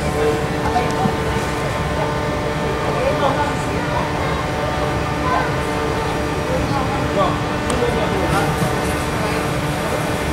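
A snow tube slides down a slope with a steady rushing hiss.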